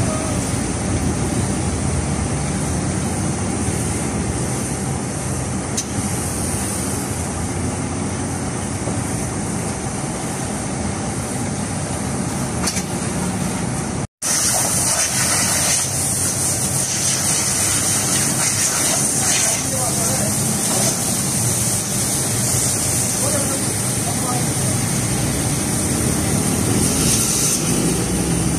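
A pressure washer hisses steadily as water sprays onto a car.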